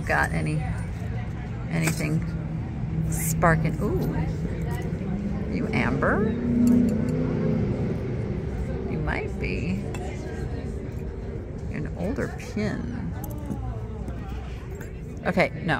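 Metal jewellery clinks softly as a hand picks it up and sets it down.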